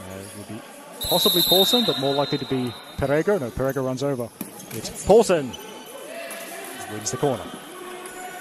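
Men shout loudly across an echoing indoor hall.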